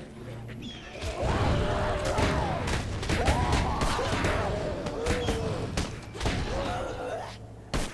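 Zombies growl and groan close by.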